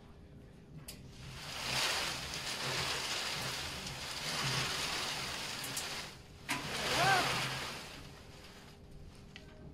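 Paper tickets tumble and rustle inside a spinning wire drum.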